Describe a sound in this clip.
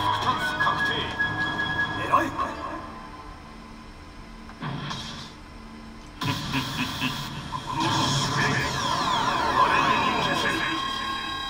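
Slot machine reels spin and stop with clicks.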